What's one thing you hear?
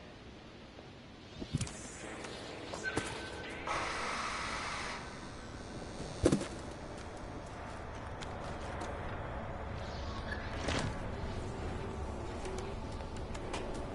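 A cat's paws land with soft thumps on metal roofing.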